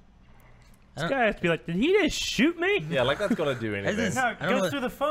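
Men laugh together loudly.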